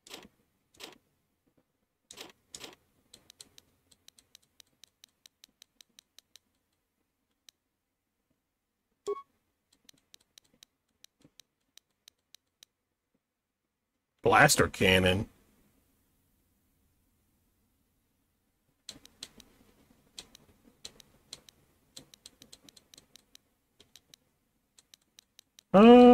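Soft menu clicks tick rapidly as a list scrolls.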